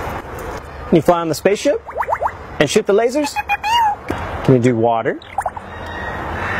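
A parrot sings in a high, warbling voice into a microphone.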